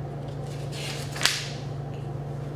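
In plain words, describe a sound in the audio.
Paper rustles as a sheet is turned.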